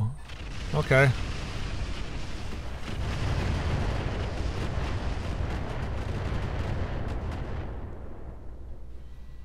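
A large explosion booms and rumbles, then fades away.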